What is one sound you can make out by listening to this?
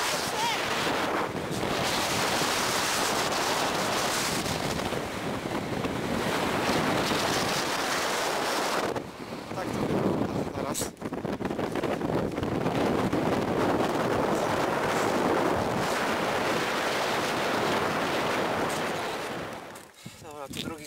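Strong wind roars across an open mountainside.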